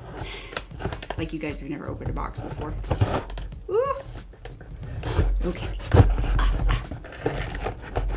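A knife slices through packing tape on a cardboard box.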